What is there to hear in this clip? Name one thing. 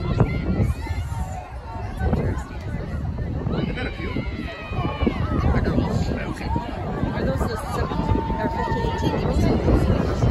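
A crowd of children and adults shout and cheer outdoors.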